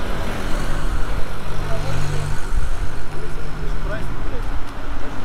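A van engine idles and passes by nearby.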